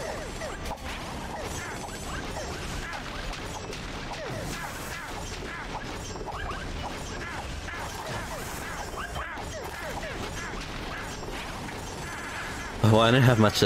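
Video game swords slash and clash rapidly.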